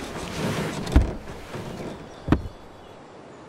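Shoes thump onto a car dashboard.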